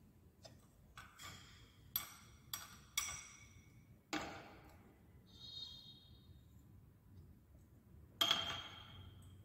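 A glass tube taps and clinks lightly against a glass beaker.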